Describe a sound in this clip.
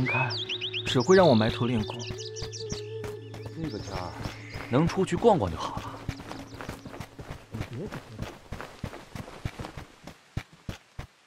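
Quick footsteps run across stone paving.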